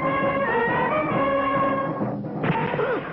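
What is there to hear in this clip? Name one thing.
A brass band plays a march.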